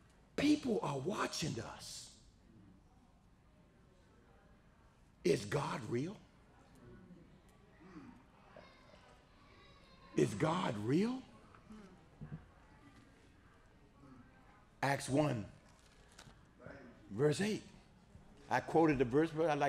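A middle-aged man speaks with animation into a microphone, close by.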